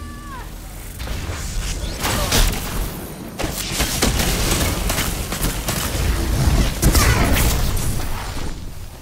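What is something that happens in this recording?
Gunfire cracks and booms in a game.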